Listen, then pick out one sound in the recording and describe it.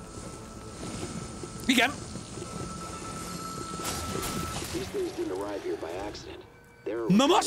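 Fire bursts and roars in explosions from a video game.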